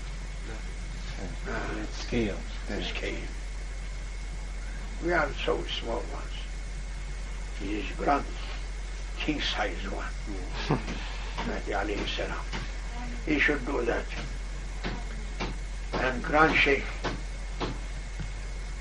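An elderly man speaks calmly and slowly, close by, with pauses between phrases.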